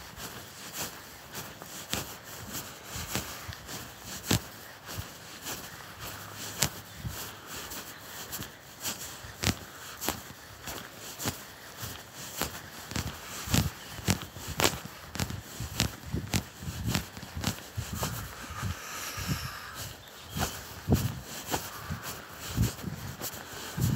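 Bare feet step softly on grass.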